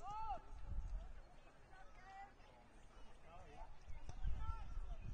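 Young players shout and call out far off across an open field.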